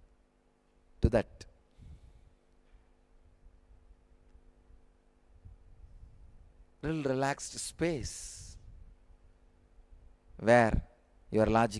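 A man speaks with animation into a microphone, in short bursts with long pauses.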